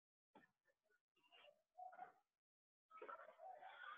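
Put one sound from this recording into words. Paper rustles softly as a sheet is handled.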